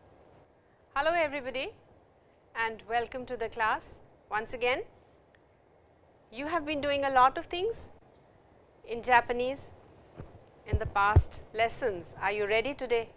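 A middle-aged woman speaks calmly into a nearby microphone.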